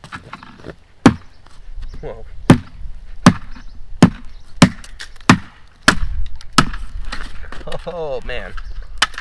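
A hatchet strikes a wooden branch with sharp, repeated knocks.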